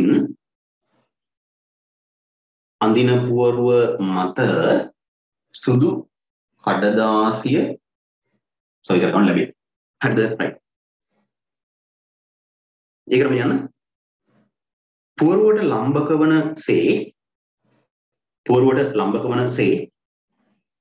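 A man speaks calmly and clearly into a microphone, pausing between phrases.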